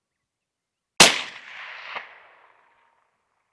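A rifle fires a single loud shot that echoes across open ground.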